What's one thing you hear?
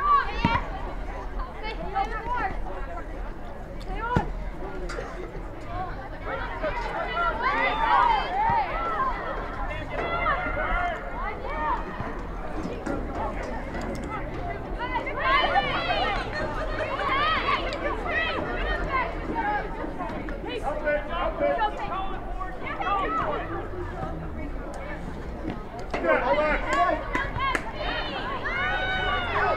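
Young women shout and call to each other across an open outdoor field.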